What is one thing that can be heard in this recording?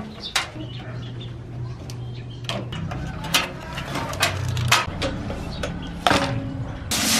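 A screwdriver scrapes and clicks against metal.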